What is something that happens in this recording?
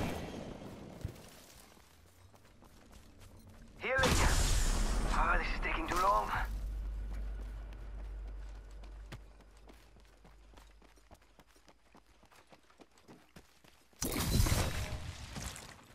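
Footsteps patter on grass and dirt.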